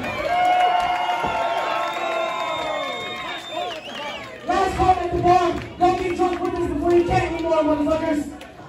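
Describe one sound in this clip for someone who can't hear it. A crowd chants loudly in an echoing hall.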